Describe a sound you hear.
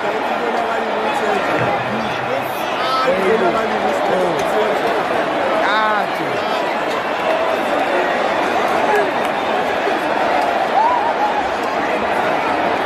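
A large stadium crowd roars and shouts steadily in a vast open space.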